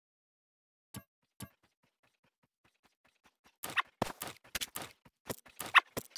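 Short game menu clicks sound in quick bursts.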